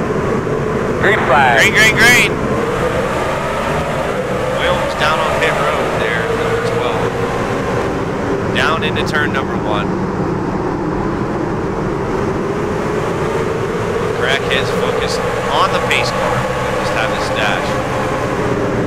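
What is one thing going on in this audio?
Race car engines whine past as cars speed by up close.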